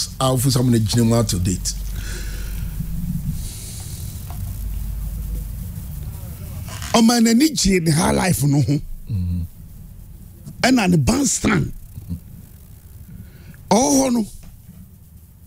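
An elderly man speaks with animation into a microphone, in short bursts.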